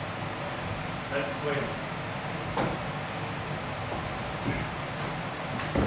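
Footsteps thud on a wooden stage floor.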